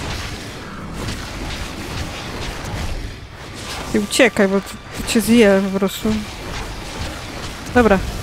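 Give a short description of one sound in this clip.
Game combat effects crash and whoosh.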